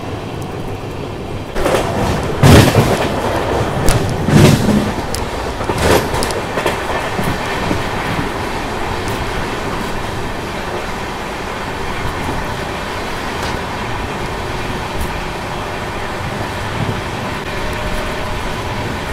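A train rumbles steadily along the tracks, heard from outside a carriage in rushing wind.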